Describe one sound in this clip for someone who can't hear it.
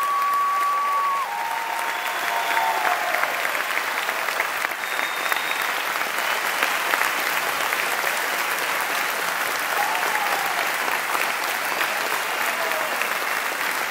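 Audience members whistle shrilly.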